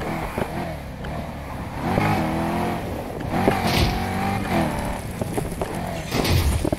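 Tyres skid and scrape over dirt.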